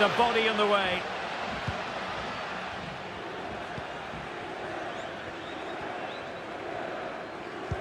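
A stadium crowd murmurs and roars.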